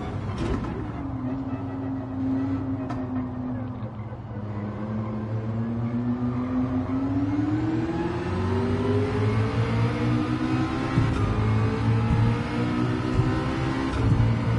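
A racing car engine drones low as the car slows, then revs up higher and higher as it speeds away.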